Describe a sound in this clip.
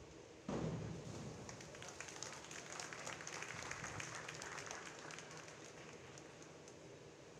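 A crowd cheers and claps in an echoing hall.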